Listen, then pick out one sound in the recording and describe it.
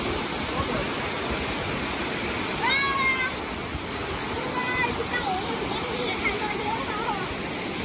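A waterfall roars steadily, splashing into a pool.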